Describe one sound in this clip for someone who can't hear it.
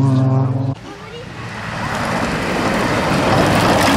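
A third rally car engine approaches with a rising roar.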